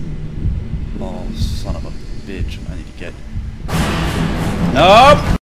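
A young man talks close into a microphone.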